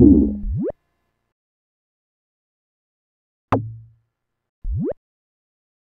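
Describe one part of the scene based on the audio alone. Short rising electronic tones chirp, twice.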